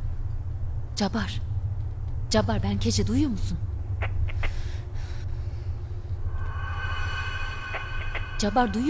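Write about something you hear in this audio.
A young woman speaks quietly into a radio handset.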